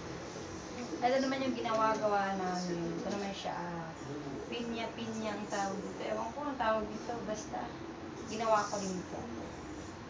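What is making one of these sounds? A young woman talks nearby in a lively way.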